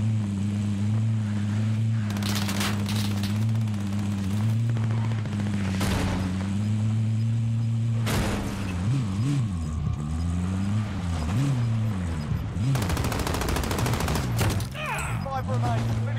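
Tyres crunch over snow and dirt.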